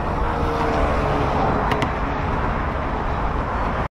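Cars drive by on a multi-lane road.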